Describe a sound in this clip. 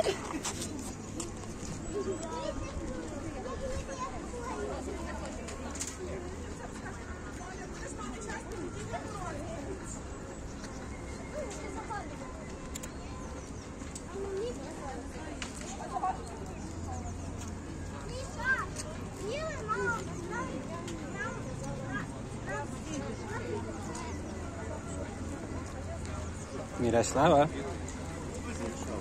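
A little girl babbles and chatters softly close by.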